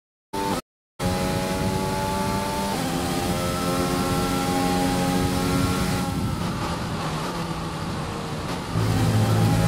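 A racing car engine roars at high revs, shifting gears and dropping in pitch under braking.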